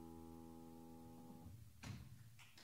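A piano chord rings out and fades.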